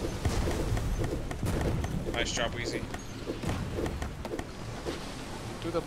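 A blade swings through the air with a whoosh.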